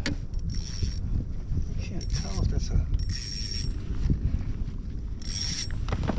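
A fishing reel clicks as its handle turns.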